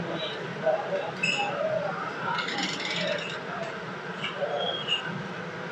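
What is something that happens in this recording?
Liquid pours and splashes into a metal pot.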